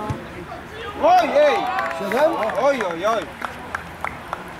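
Men cheer and shout excitedly outdoors at a distance.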